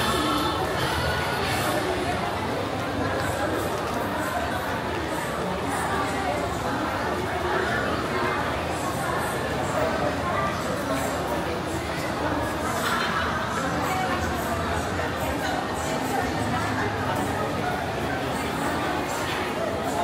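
Footsteps tap on a hard floor nearby.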